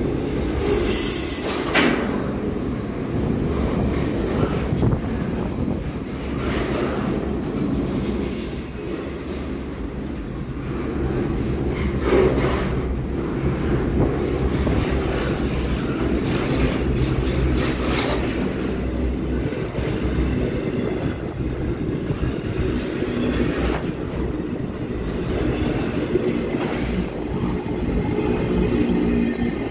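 Steel wheels clack and rattle over rail joints.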